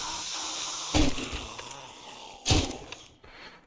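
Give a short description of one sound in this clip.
Gunshots bang.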